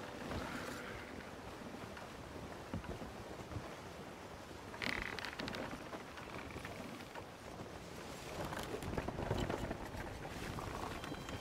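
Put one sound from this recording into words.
Waves slosh and splash against a wooden ship's hull.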